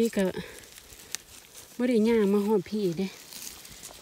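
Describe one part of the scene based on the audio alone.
A mushroom is pulled from soft soil with a soft tearing sound.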